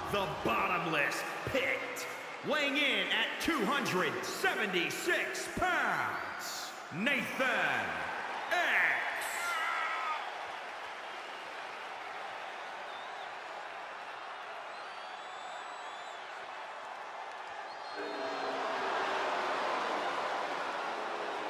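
A crowd cheers and roars in a large arena.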